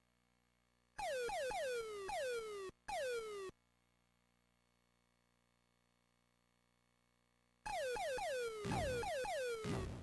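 Electronic arcade zaps sweep down in pitch in rapid bursts.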